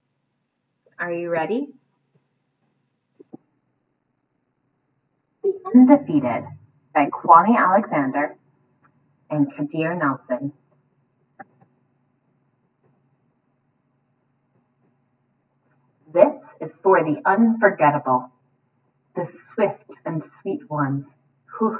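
A young woman speaks cheerfully and reads aloud, close to a microphone.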